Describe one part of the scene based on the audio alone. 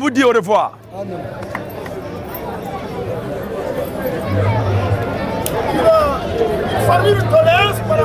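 A group of men sings together.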